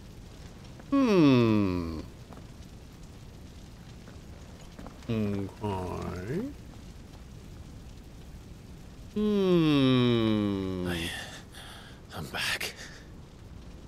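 A man speaks in a low, weary voice.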